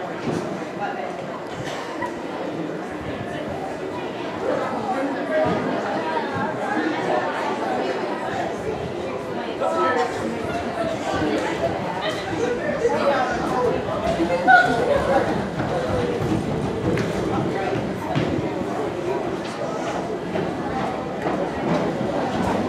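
Outdoors, a crowd of boys chatters and calls out nearby.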